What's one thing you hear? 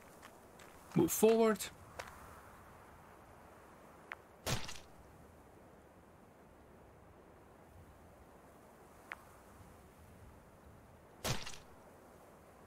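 Blades strike in a short fight, with sharp hits now and then.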